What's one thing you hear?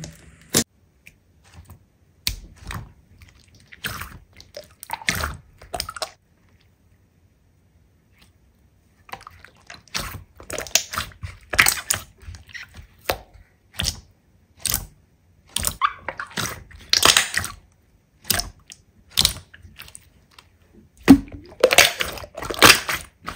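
Hands squish and pop glossy slime with wet squelches and clicks.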